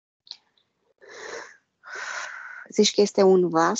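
A woman breathes deeply and slowly.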